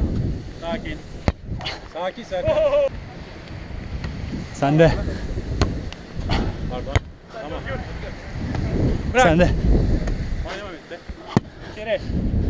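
Hands strike a volleyball with sharp slaps.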